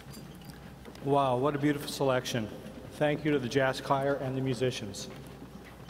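A man announces over a loudspeaker in a large echoing hall.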